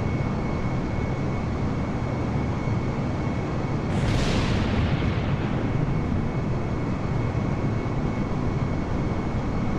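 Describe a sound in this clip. A jet airliner's engines roar steadily as it flies low.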